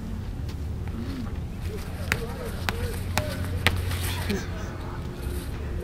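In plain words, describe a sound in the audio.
Shoes scuff and scrape on concrete as a thrower spins.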